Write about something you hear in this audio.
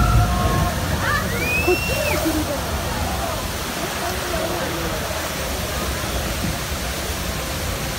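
Water rushes and splashes down a nearby waterfall.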